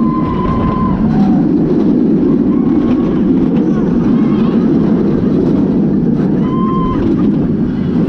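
A woman screams with excitement close by.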